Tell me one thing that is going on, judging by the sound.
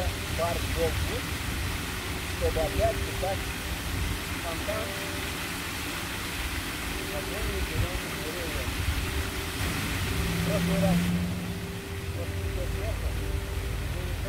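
A fountain splashes steadily into a pond nearby.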